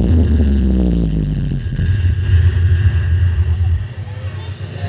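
Deep bass booms loudly from large loudspeakers outdoors.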